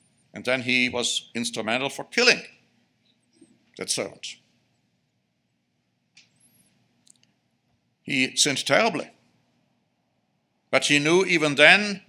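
A middle-aged man speaks calmly and deliberately into a microphone, with pauses between phrases.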